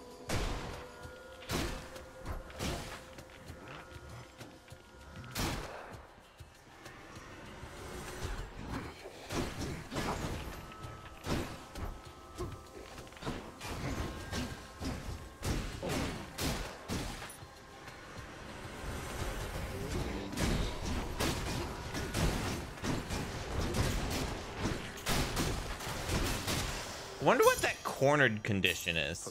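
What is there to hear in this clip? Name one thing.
Game weapons slash and clang in quick hits.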